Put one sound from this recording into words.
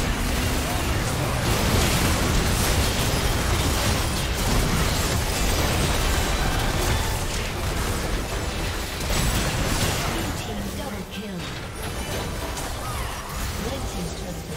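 Magical blasts and impacts crackle and boom in a video game battle.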